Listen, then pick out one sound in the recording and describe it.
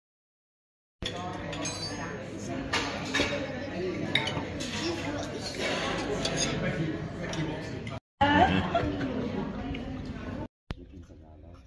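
Several adults chatter around a dining table.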